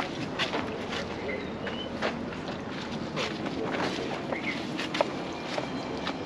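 A hand rubs and wipes across a car windshield.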